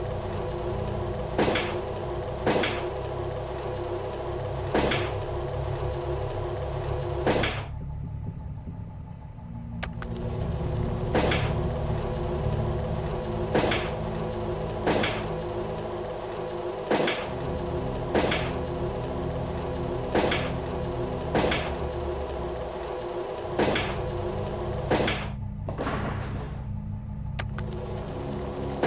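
Dark ambient game music drones steadily.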